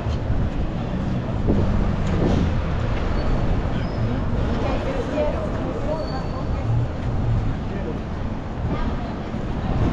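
Cars drive slowly past nearby.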